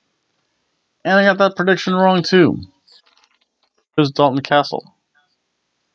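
A middle-aged man speaks close to a microphone.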